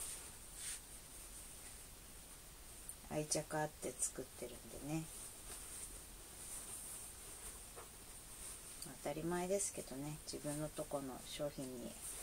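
Fabric rustles as a robe is adjusted.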